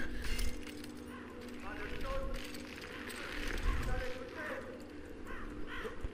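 A climbing rope creaks and rubs.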